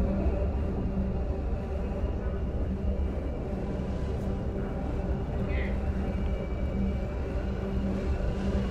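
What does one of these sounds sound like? A hover bike engine hums steadily.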